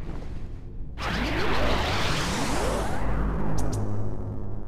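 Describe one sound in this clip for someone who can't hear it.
A magical shimmering whoosh swells and sweeps upward.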